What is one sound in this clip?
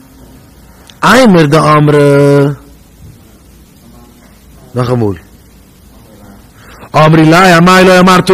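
A man chants in a sustained, melodic voice through a microphone, in short phrases separated by pauses.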